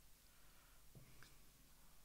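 A mug knocks lightly as it is lifted from a table.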